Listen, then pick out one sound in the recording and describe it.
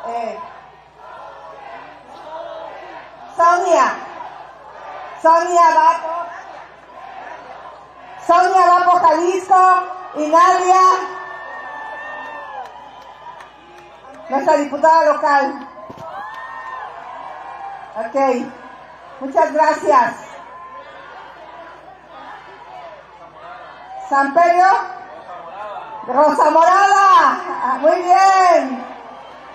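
An older woman speaks loudly into a microphone over loudspeakers in short bursts.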